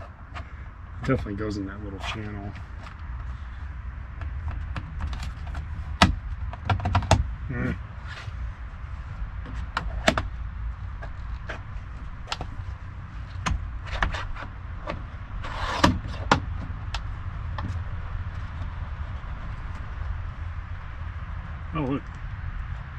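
Tools click and knock against a car door panel.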